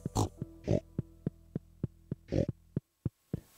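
A pig grunts.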